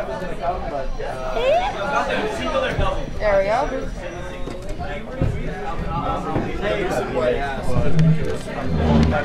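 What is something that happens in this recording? Chess pieces clack on a wooden board.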